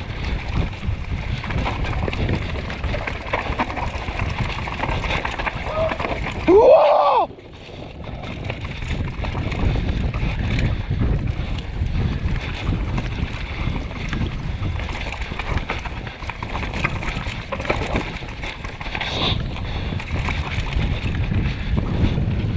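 Bicycle tyres rumble and rattle over a rough dirt trail.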